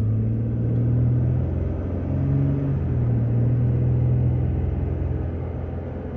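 Tyres roll on a paved road.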